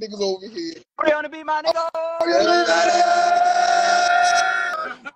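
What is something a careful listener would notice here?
Young men laugh loudly, heard through a phone.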